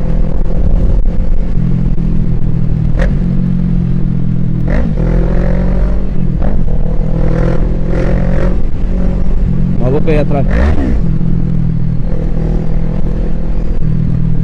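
A motorcycle engine hums steadily up close, with the pitch shifting as the rider works the throttle.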